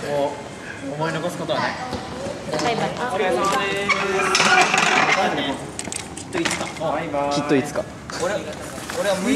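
Young people talk and laugh close by.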